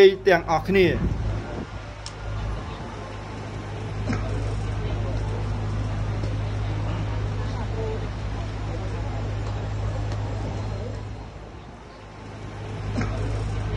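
A large crowd chatters steadily in the background.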